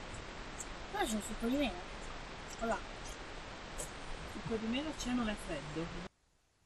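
A young girl talks casually nearby.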